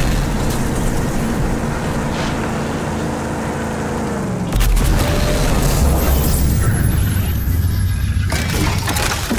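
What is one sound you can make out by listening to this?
A vehicle engine roars and revs as it drives.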